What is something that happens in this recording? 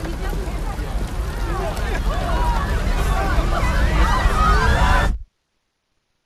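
A crowd murmurs and shouts outdoors.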